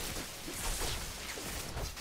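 Electric lightning zaps and crackles.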